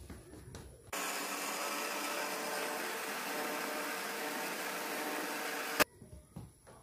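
An electric hand blender whirs loudly and steadily, then stops.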